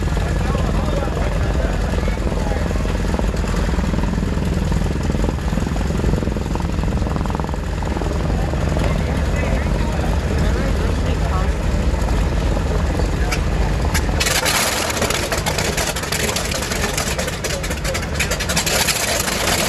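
A propeller plane's engine rumbles loudly close by.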